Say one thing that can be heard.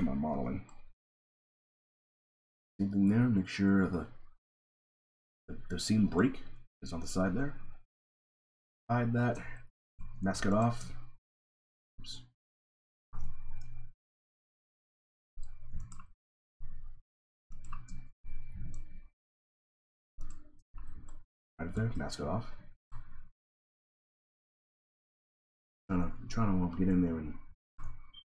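A man talks calmly into a microphone in short bursts.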